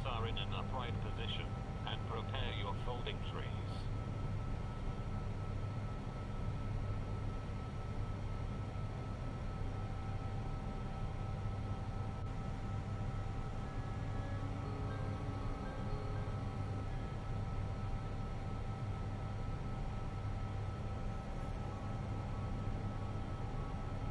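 A jet airliner's engines drone steadily in the cockpit.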